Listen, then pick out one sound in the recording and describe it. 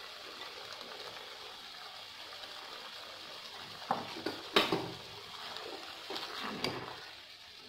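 Vegetables sizzle softly in a hot pan.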